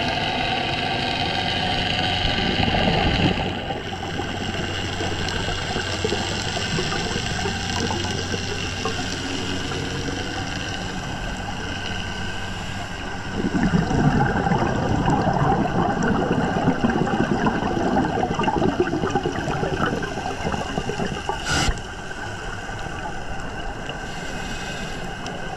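Scuba divers breathe out, and bubbles gurgle and rumble underwater.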